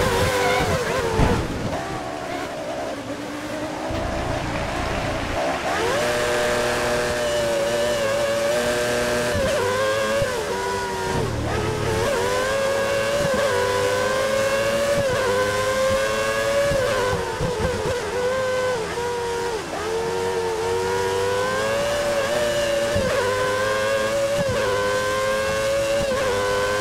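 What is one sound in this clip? Rain hisses steadily on the track.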